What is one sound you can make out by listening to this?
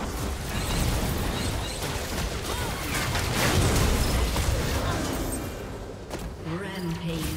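Magic spells whoosh and crackle during a game battle.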